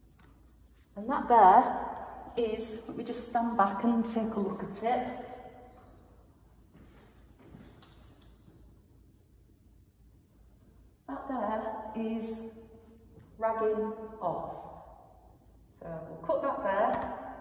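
A middle-aged woman speaks calmly and explains, close by.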